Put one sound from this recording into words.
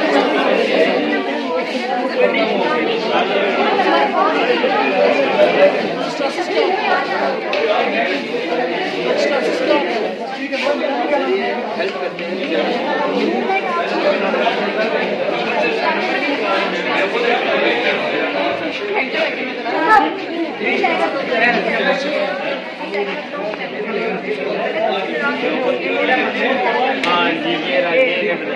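Young men and women chatter and murmur all around.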